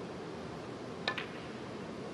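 A cue tip strikes a snooker ball with a sharp click.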